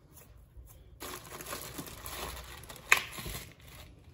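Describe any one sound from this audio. Plastic wrap crinkles as it is stretched over a bowl.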